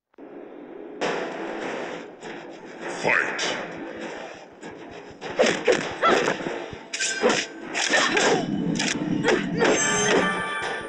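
Fighters grunt with effort.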